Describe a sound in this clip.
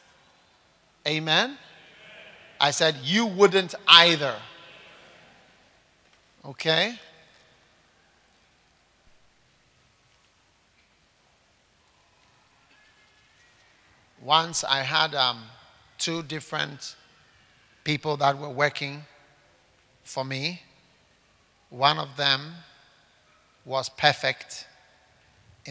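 A man speaks into a microphone in slow, measured phrases with pauses.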